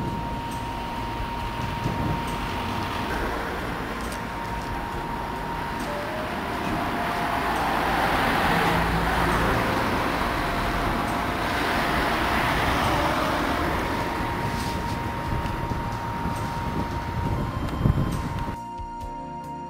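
Cars drive along a street nearby.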